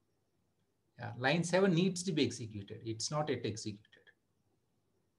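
A man speaks calmly through a computer microphone on an online call.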